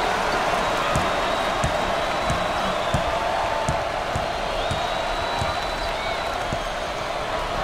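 A basketball bounces on a hardwood floor as a player dribbles.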